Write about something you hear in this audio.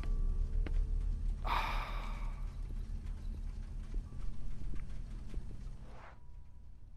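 Footsteps tread slowly across a hard floor.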